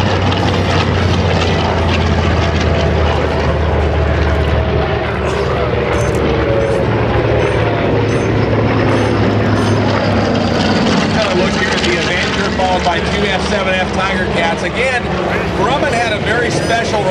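A propeller plane's piston engine drones loudly overhead.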